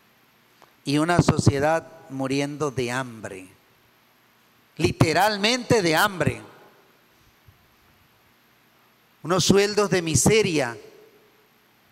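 A middle-aged man speaks with animation through a microphone, in short phrases with pauses, in a slightly echoing room.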